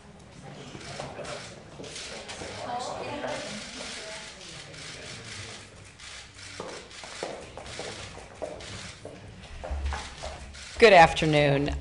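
A small crowd murmurs and rustles.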